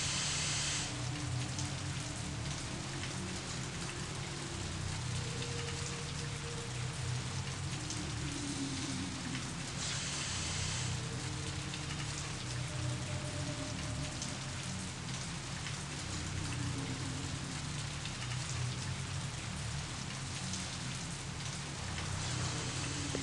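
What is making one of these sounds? A deep machine hum drones steadily in a large echoing hall.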